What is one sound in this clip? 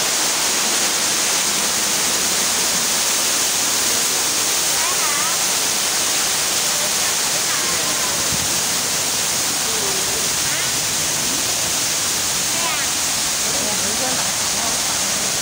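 Water from a waterfall splashes steadily nearby.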